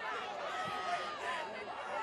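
A man nearby yells with excitement.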